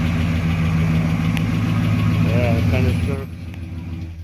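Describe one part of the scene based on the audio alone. A car engine idles with a low, steady rumble, then cuts off.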